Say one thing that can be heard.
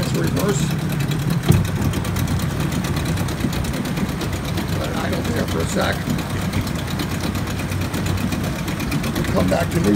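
An outboard motor idles with a steady rattling hum.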